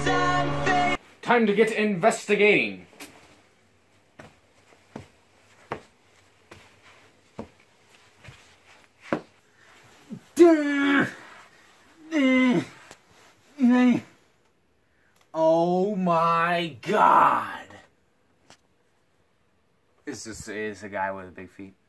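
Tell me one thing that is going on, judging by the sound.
A young man talks and exclaims with animation close by.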